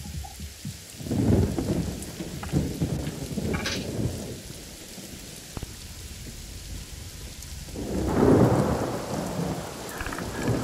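Thunder rumbles loudly.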